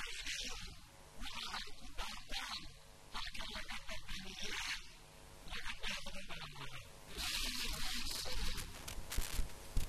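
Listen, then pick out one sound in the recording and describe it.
A man speaks with animation into a microphone over loudspeakers.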